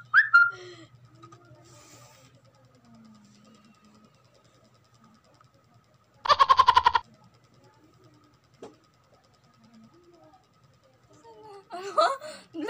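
A young woman laughs and squeals close by.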